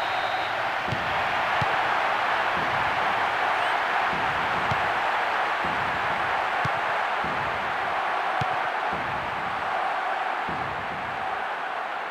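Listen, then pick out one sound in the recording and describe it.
A ball is kicked several times with dull thuds.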